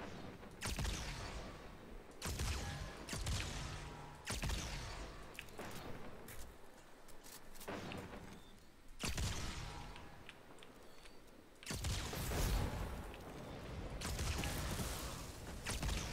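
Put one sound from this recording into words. Game gunfire and explosions boom loudly in bursts.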